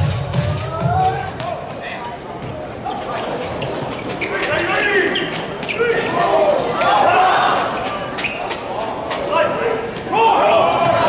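A volleyball is struck hard, with sharp slaps echoing in a large hall.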